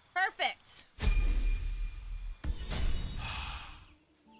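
A game spell effect whooshes with a bright shimmering burst.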